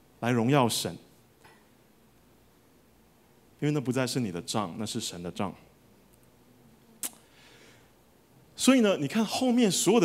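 A man speaks through a microphone in calm, measured phrases with pauses.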